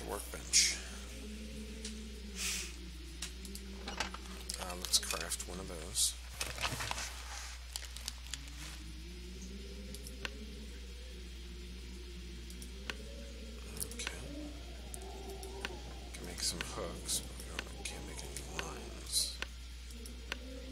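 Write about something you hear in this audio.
Soft clicks and paper flips sound as menu pages turn.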